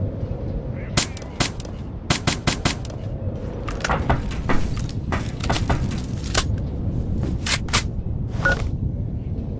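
Metal parts of a rifle click and clack.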